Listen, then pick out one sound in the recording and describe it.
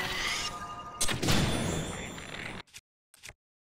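A bright magical chime rings out.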